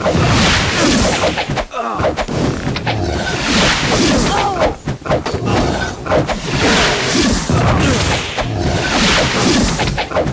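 Magic blasts burst and crackle in bursts of noise.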